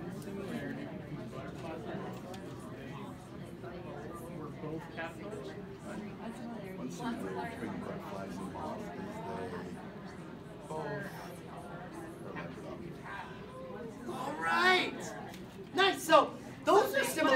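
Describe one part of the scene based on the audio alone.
Many adults chatter at the same time.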